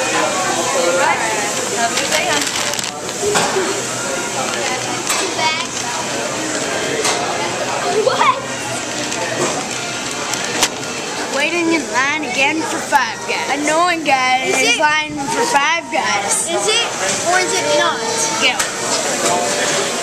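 A crowd chatters in the background of a busy room.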